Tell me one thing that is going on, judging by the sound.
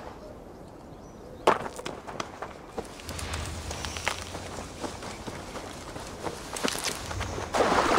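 Tall dry plants rustle as someone pushes through them.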